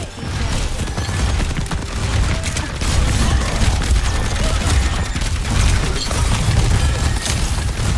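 Loud explosions and impact blasts boom.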